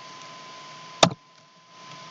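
A block is set down with a single soft thud.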